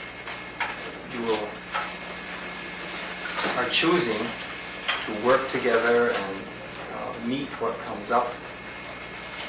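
A man speaks calmly, close by, with pauses.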